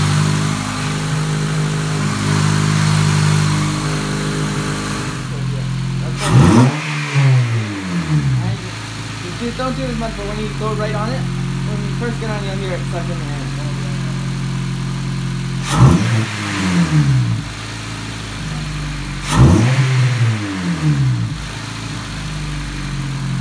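A four-cylinder car engine idles.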